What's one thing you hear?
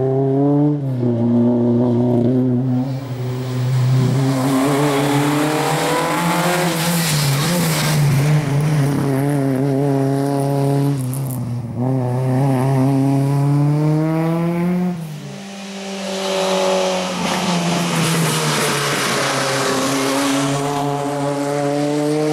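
A rally car engine roars loudly, revving up and dropping repeatedly as it speeds past.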